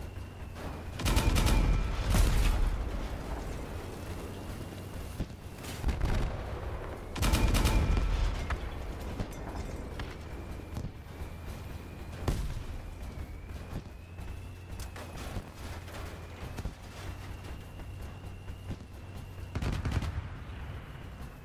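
Heavy guns fire with loud booming blasts.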